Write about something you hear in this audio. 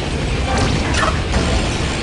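An explosion bursts with a bang.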